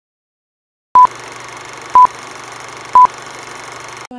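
Short beeps sound once a second, counting down.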